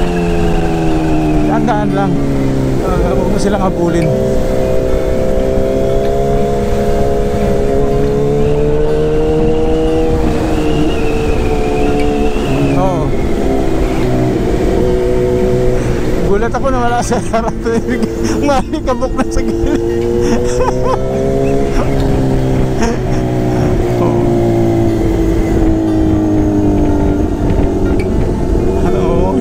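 A motorcycle engine hums steadily, its pitch rising and falling with the throttle.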